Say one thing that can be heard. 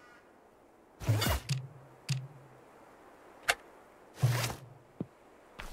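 A game menu opens and closes with soft whooshing chimes.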